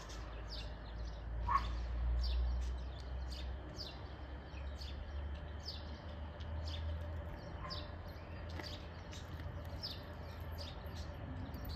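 A parked train hums low and steadily in the distance.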